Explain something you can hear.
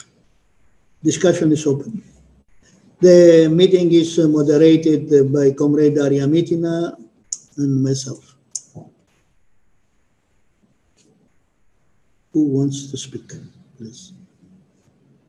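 An elderly man speaks calmly through an online call microphone, pausing often.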